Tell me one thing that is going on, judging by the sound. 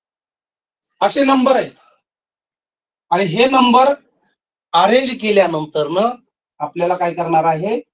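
A man speaks loudly and clearly.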